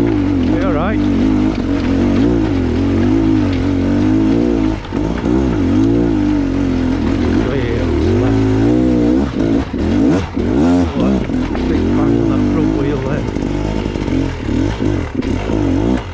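Tyres crunch and clatter over loose rocks.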